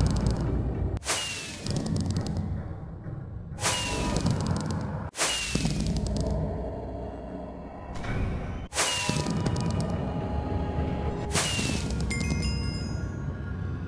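Fireworks burst with sharp bangs and crackle.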